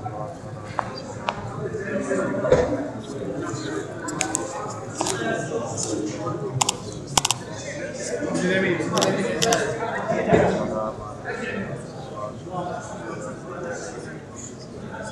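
A crowd of men murmur and talk nearby in a large echoing hall.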